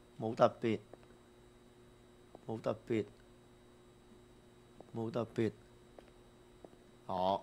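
A young man speaks in short, lively bursts close to a microphone.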